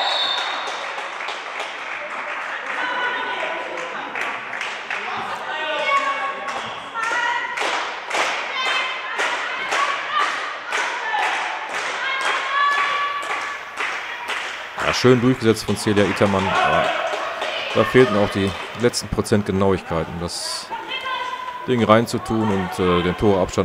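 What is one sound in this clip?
Players' shoes squeak on a hard floor in a large echoing hall.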